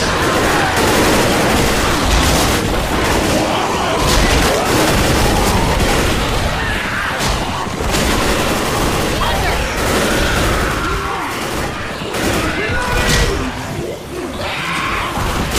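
Automatic rifles fire in rapid bursts.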